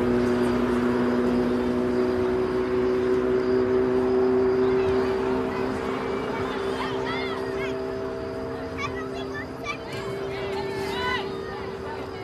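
A crowd of spectators murmurs and chatters nearby outdoors.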